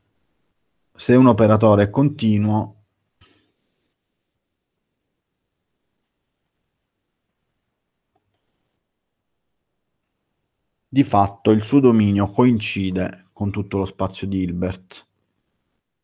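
A man speaks calmly through a headset microphone on an online call, with long pauses.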